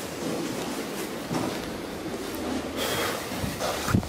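An elevator landing door swings open.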